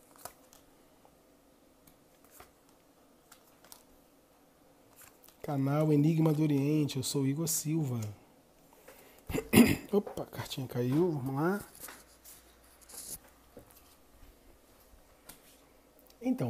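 Playing cards are laid down on a table with soft taps.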